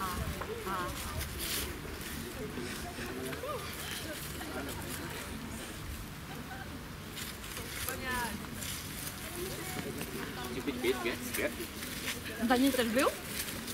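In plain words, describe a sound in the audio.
A young man speaks calmly to a group.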